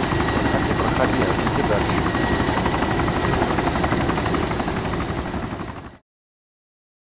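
A helicopter's rotor thumps loudly and steadily, then fades away.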